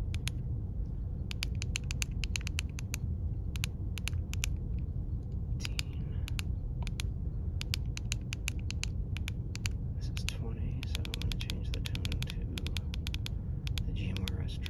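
A handheld radio beeps with quick, short tones as its buttons are pressed.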